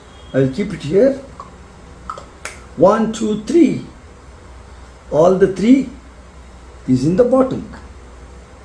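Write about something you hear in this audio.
A middle-aged man talks calmly and close by, in short phrases.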